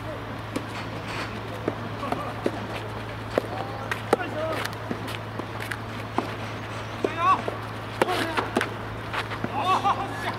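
Tennis balls are struck with rackets, sharp hollow pops going back and forth.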